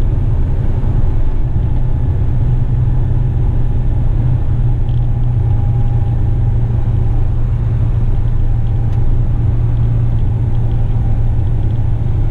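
Tyres roll along the road with a steady hum.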